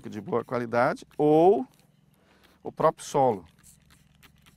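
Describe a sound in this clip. A middle-aged man speaks calmly and close by, outdoors.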